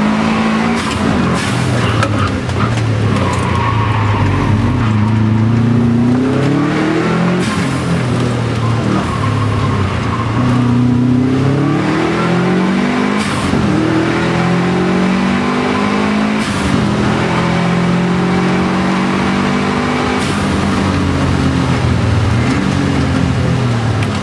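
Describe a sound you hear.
Rain patters on a car's windscreen.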